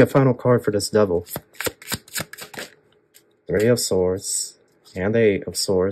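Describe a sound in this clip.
A card slides and taps onto a table.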